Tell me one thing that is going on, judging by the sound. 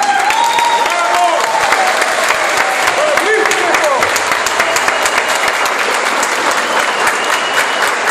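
A large crowd claps and cheers in an echoing hall.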